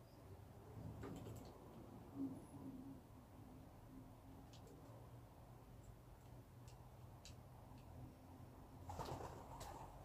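A pigeon coos softly nearby.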